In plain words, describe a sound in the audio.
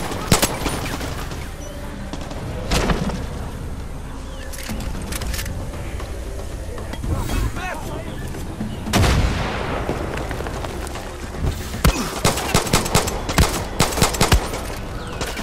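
Pistol shots crack sharply, several in quick bursts.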